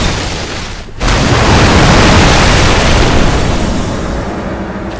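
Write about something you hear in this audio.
Water spouts gush and roar.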